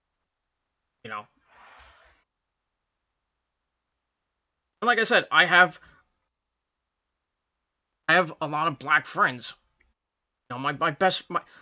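A middle-aged man speaks close to a microphone in short bursts, with pauses.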